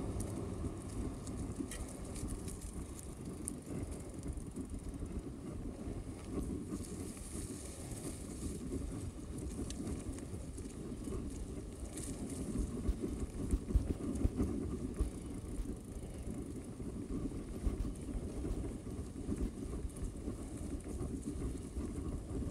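Bicycle tyres roll over a dirt trail and crunch dry leaves.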